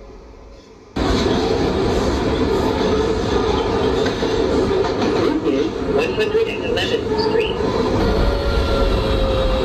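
A subway train rumbles steadily along the tracks, heard from inside the cab.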